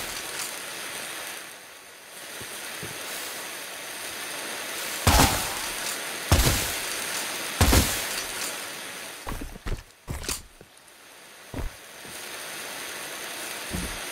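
Flames crackle and hiss steadily.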